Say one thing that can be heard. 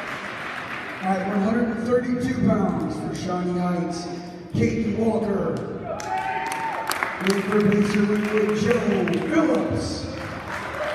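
A man announces loudly over a loudspeaker, echoing through a large hall.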